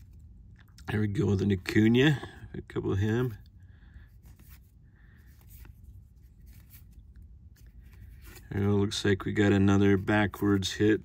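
Trading cards slide and rustle softly as they are flipped through by hand.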